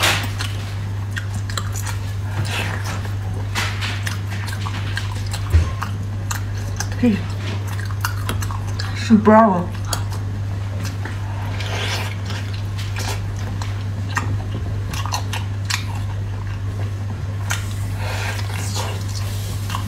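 A young woman chews and slurps noisily close to a microphone.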